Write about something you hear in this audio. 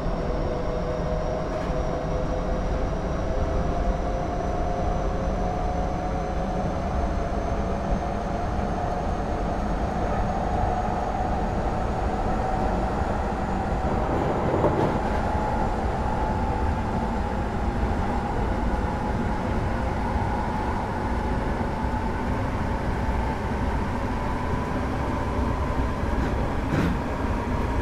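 Train wheels rumble steadily over the rails.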